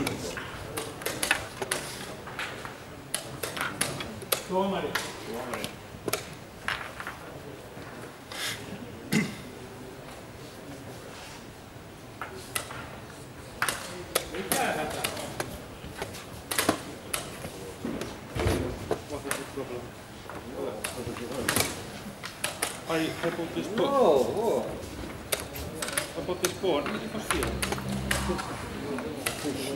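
Men murmur quietly in the background.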